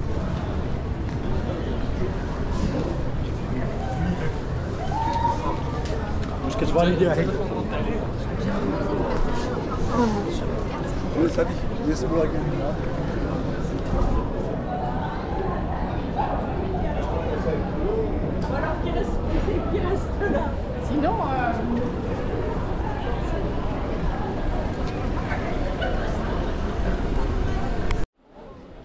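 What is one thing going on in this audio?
A crowd of people chatters all around, outdoors.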